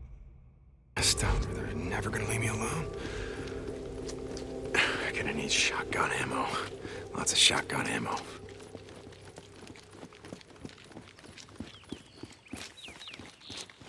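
Footsteps thud on a wet road.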